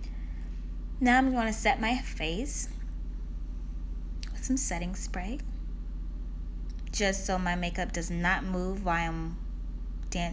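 A young woman speaks softly and close to a microphone, in short bursts.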